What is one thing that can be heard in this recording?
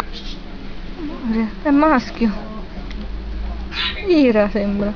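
A kitten mews loudly several times.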